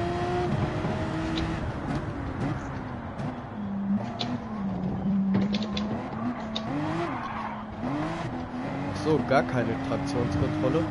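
A racing car engine roars, its pitch rising and falling as it speeds up and slows down.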